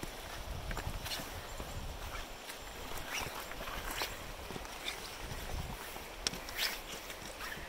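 Wind blows against the microphone outdoors.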